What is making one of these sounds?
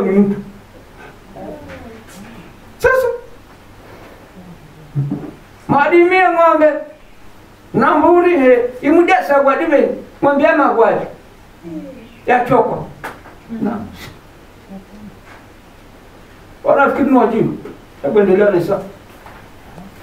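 A middle-aged man preaches loudly through a headset microphone in bursts, with pauses between phrases.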